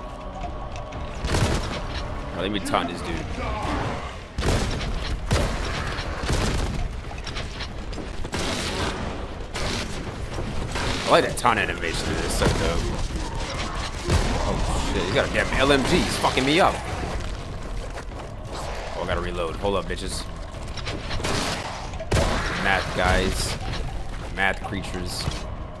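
Shotgun blasts boom again and again.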